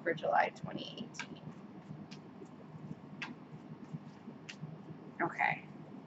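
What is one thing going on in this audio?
Playing cards riffle and shuffle in a woman's hands.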